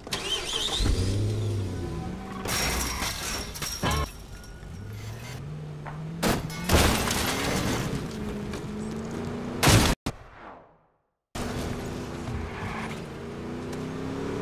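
A car engine revs, rising and falling in pitch as the car drives off.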